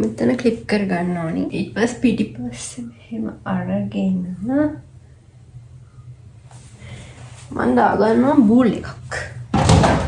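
A young woman talks calmly close by.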